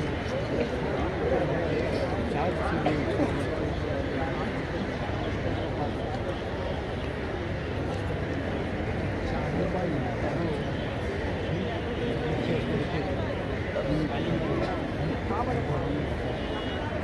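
A large crowd of men murmurs and chatters outdoors.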